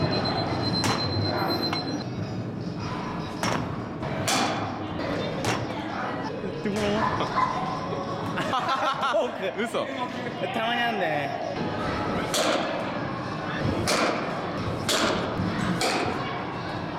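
A metal bat strikes baseballs with sharp pings, again and again.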